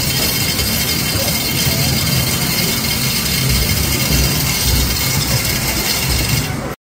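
An arcade game plays loud electronic music and sound effects.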